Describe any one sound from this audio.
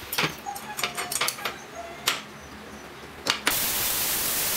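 Metal tools clink and knock on a workbench.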